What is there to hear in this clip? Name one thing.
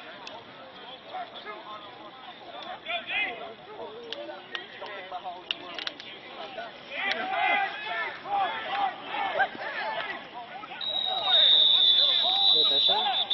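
Men and boys talk and shout outdoors nearby.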